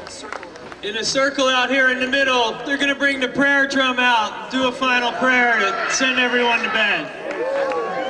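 A man sings loudly through loudspeakers.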